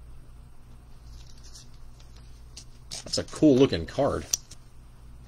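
A plastic card sleeve crinkles as it is handled.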